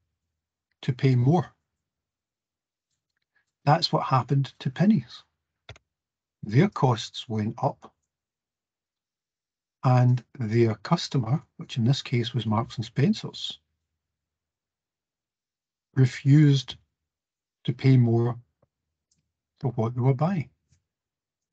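A man speaks calmly through an online call, with pauses.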